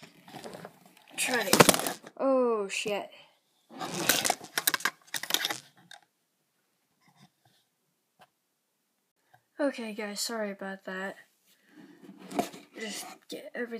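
A cardboard box rubs and bumps as it is handled.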